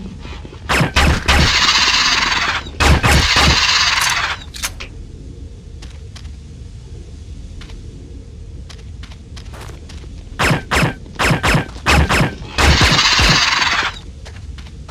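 A pistol fires a rapid string of shots.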